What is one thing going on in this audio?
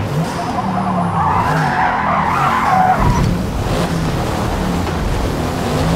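Tyres skid and scrub over grass and dirt.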